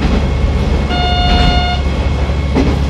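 A level crossing bell rings briefly as the train passes.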